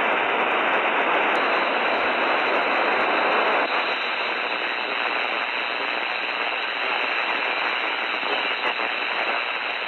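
Radio static hisses steadily from a receiver.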